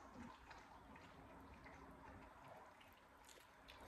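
A woman bites into a burger and chews.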